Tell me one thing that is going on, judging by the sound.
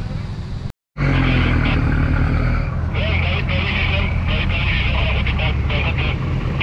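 An off-road vehicle's engine rumbles and revs loudly as it churns through mud.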